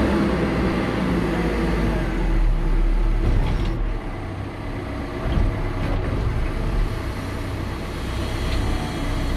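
Hydraulics whine as a loader bucket lifts.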